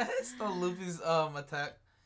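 A young man laughs softly close by.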